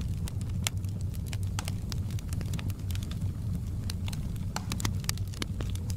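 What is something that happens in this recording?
Flames roar with a low, steady rumble.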